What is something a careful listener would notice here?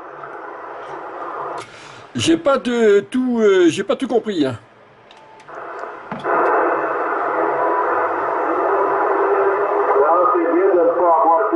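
A radio crackles with hissing static through its loudspeaker.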